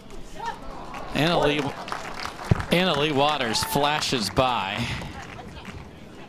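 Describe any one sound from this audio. A crowd outdoors cheers and applauds.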